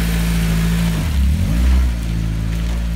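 A sports car engine revs sharply.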